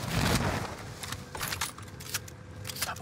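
A gun's metal parts click and rattle as it is handled.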